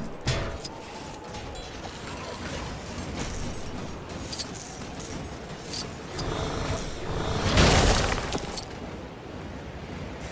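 Coins jingle and clink as they are collected in a game.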